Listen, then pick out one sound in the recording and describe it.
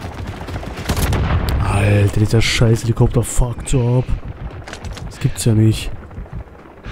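Gunfire and explosions burst loudly and rapidly.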